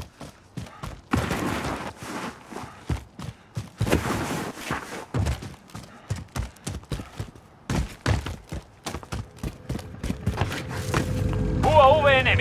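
Footsteps crunch quickly over grass and gravel.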